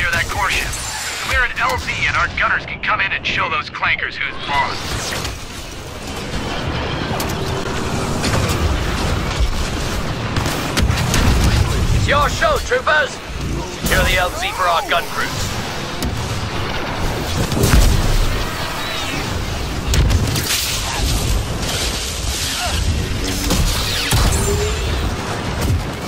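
Blaster shots fire rapidly.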